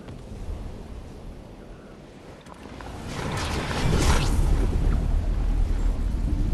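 Wind rushes past during a fall, growing louder.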